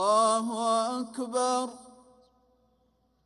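A man chants in a long, drawn-out call through a loudspeaker in a large echoing space.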